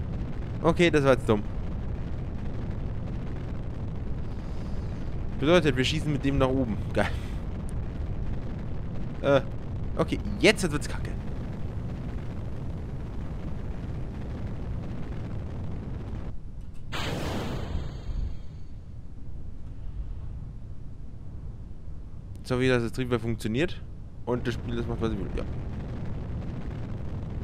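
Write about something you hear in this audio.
A rocket engine roars with a steady low rumble.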